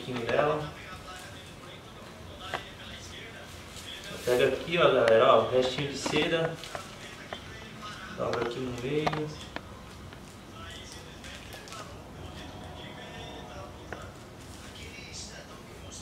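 Stiff paper rustles and crinkles as it is folded.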